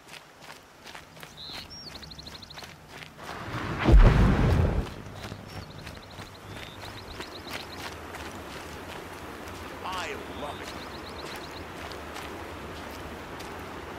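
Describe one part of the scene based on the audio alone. Footsteps run quickly over dry dirt.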